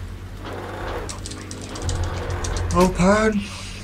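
A metal grate clanks and rattles open.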